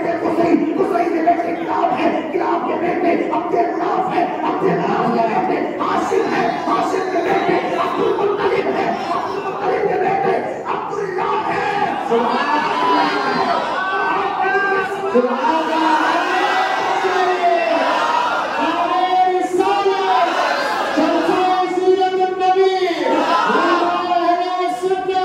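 A man sings and chants loudly through a microphone, heard over loudspeakers in an echoing hall.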